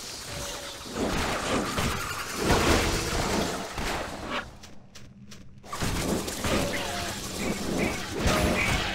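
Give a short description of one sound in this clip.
Weapon blows and magic blasts crash and thud in a fast fight.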